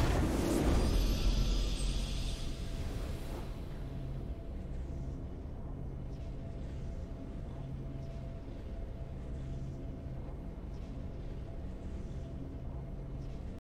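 A triumphant fanfare plays and slowly fades.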